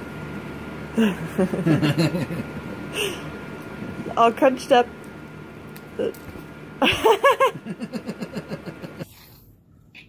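A baby giggles and squeals close by.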